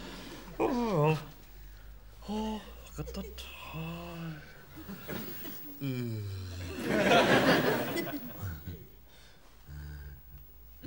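A man makes silly squeaky and grunting voice noises close by.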